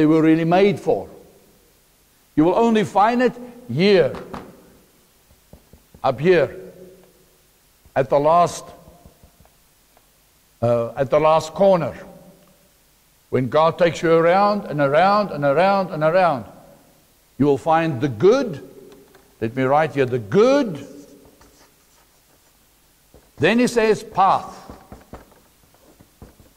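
A middle-aged man speaks clearly in short bursts with pauses, as if explaining to an audience.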